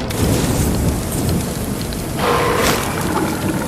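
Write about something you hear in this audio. A flamethrower roars loudly.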